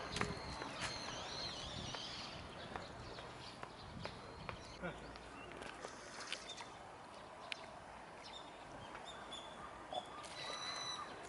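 Water splashes as a cormorant dives and thrashes at the surface.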